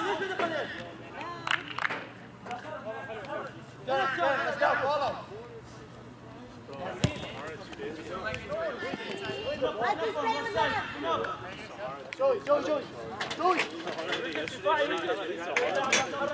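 Men shout and call out to each other across an open pitch.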